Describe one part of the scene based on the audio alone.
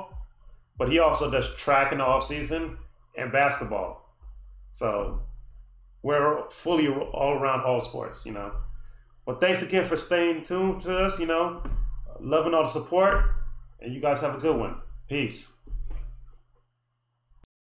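A man talks calmly and close by, explaining with animation.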